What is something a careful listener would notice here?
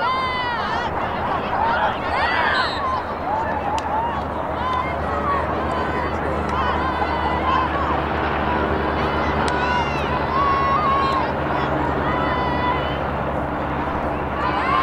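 Young women call out to each other across an open field.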